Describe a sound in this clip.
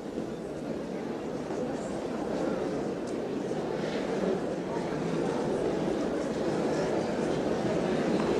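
Feet shuffle and tap on a wooden floor as couples dance.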